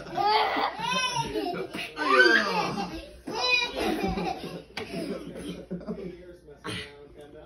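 Young children shriek and squeal playfully close by.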